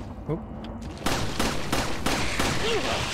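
Gunshots ring out in quick succession.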